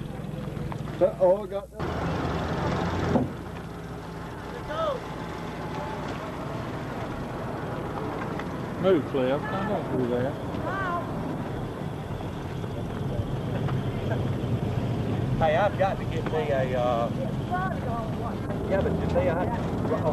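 Young people shout and laugh outdoors at night.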